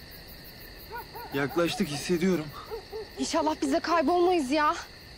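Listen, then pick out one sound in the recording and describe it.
A young man speaks with urgency nearby.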